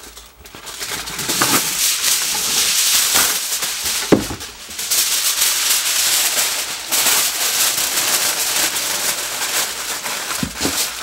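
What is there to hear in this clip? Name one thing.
Foil crinkles and rustles loudly.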